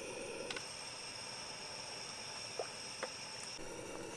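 A metal ladle clinks against a pot.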